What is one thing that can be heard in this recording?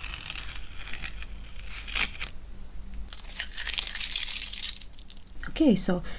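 Masking tape rips as it is peeled off paper.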